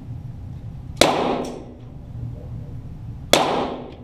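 Pellets from an air gun smack into a paper target on a wall.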